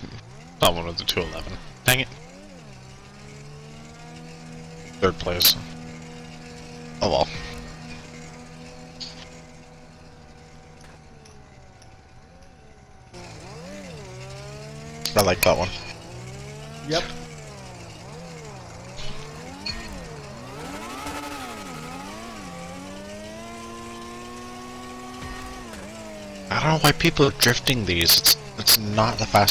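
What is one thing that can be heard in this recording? A race car engine revs and whines, rising and falling in pitch.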